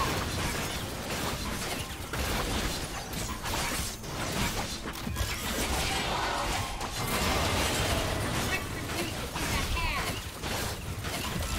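Game spells crackle and burst during a fast battle.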